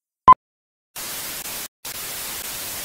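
Static hisses steadily.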